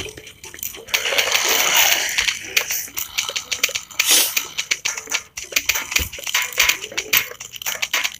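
Video game peas pop and thud against zombies in quick succession.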